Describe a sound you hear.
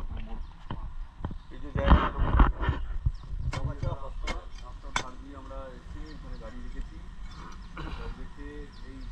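A metal digging bar thuds and scrapes into soil.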